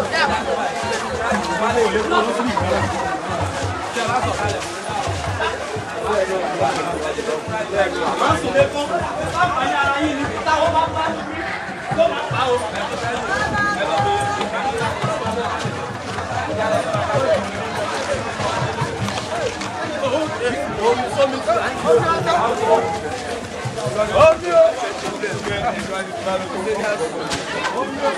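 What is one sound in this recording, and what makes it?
A crowd of people chatter and shout outdoors.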